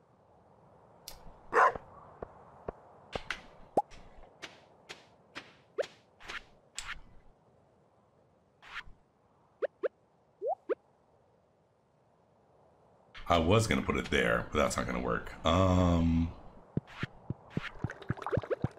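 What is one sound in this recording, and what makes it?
Short game sound effects click and pop.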